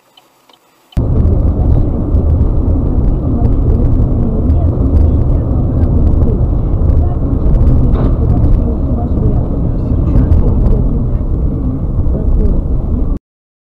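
Tyres roar steadily on a wet road inside a moving car.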